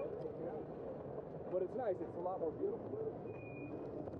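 Bicycle wheels clatter over tram tracks.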